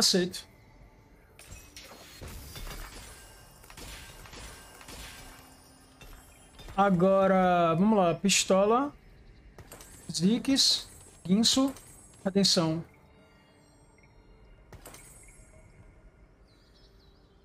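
Magical spells crackle and whoosh in a battle.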